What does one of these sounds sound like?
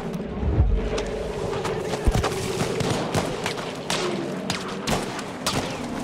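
Gunshots crack repeatedly nearby and in the distance.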